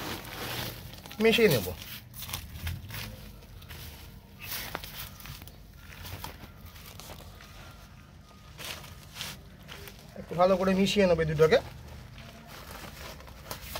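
Hands crumble and shift loose soil with soft rustling and crunching.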